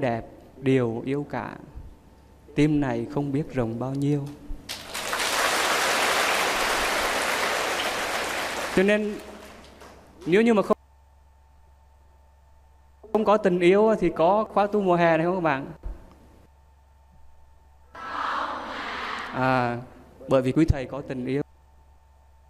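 A man speaks cheerfully into a microphone, heard through a loudspeaker in a large hall.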